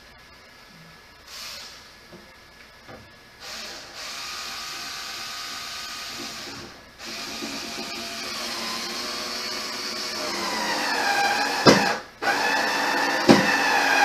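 A television plays in the background.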